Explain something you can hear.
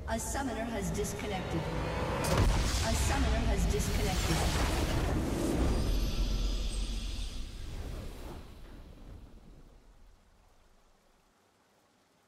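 Triumphant game music swells loudly and then fades away.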